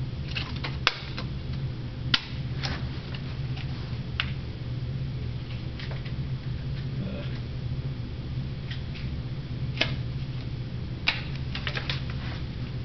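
A playing card snaps and clicks in a hand.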